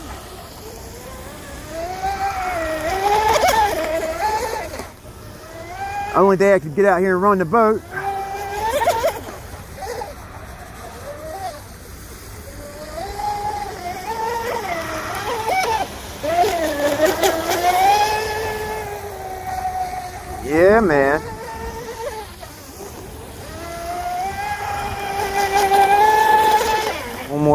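A small motorboat's engine whines at high pitch, rising and falling as it races across water.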